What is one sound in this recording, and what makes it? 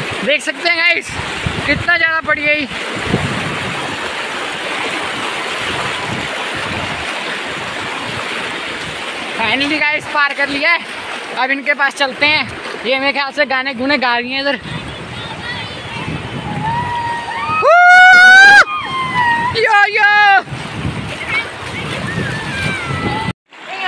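A shallow river rushes and splashes over stones.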